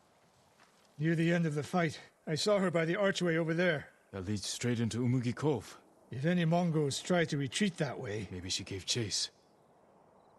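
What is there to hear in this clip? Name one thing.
A second man answers calmly at length.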